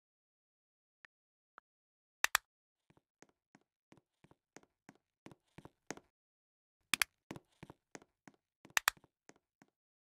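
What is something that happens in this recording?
Keyboard keys click with quick, light taps.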